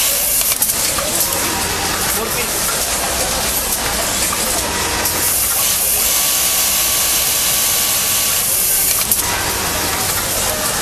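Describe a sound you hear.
An industrial machine hums and whirs steadily.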